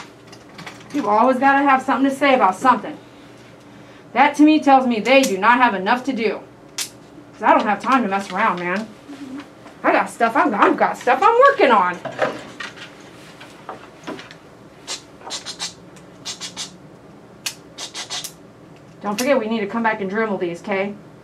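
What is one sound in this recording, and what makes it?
A woman talks calmly and closely in bursts, with pauses between.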